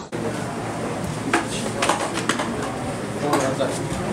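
Plastic hangers clack together.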